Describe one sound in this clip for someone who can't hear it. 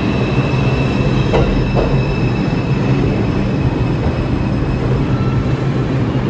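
A subway train rumbles past close by as it pulls along the platform.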